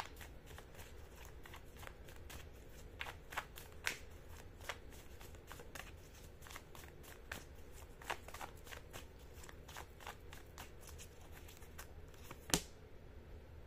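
Cards flick and tap softly as they are shuffled close by.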